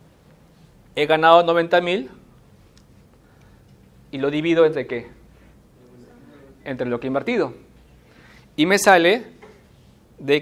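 A man speaks calmly in short phrases in a small echoing room.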